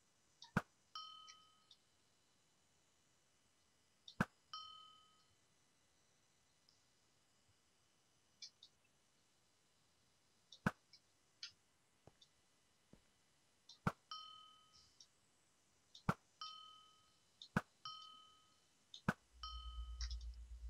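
A short, high ding sounds after several of the shots.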